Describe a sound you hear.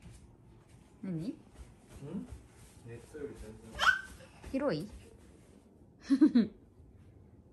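A young child squeals and babbles playfully nearby.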